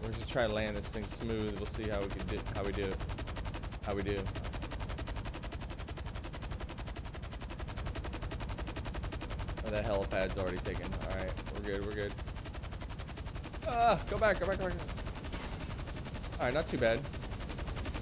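A young man talks casually into a microphone, in short bursts.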